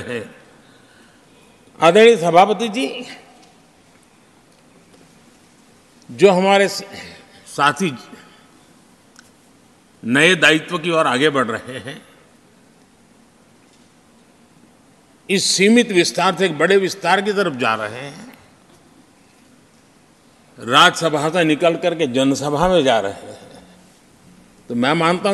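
An elderly man speaks slowly and deliberately into a microphone, with long pauses between phrases.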